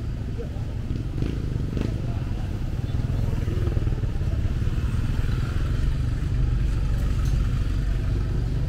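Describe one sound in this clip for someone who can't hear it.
Motorcycle engines idle and rumble close by.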